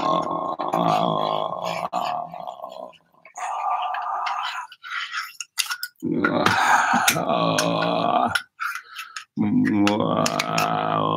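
A middle-aged man sings into a microphone with sustained notes, pausing between lines.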